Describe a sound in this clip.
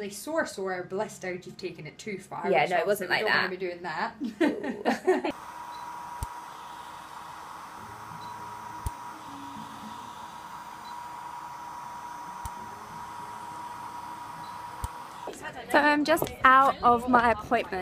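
A woman talks animatedly close to the microphone.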